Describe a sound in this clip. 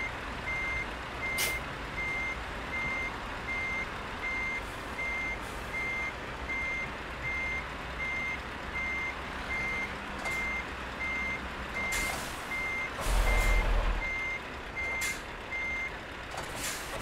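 A truck's reverse warning beeper beeps steadily.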